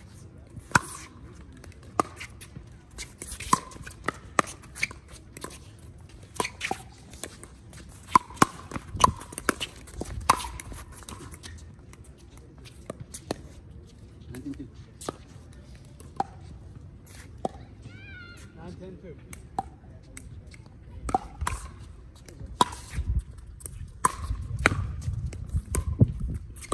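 Players' shoes scuff and squeak on the hard court.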